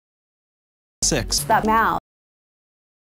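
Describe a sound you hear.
A woman talks on a phone.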